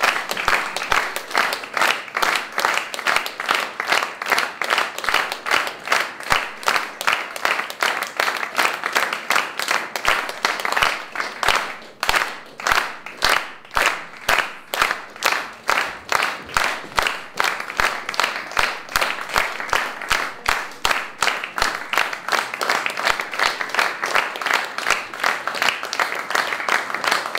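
An audience claps together in a steady, fast rhythm.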